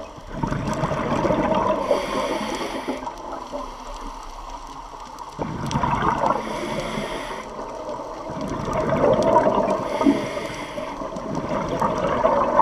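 Air bubbles from a scuba diver's regulator gurgle and rumble underwater in repeated bursts.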